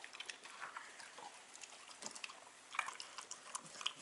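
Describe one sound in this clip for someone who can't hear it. A dog eats noisily from a metal bowl, crunching and lapping.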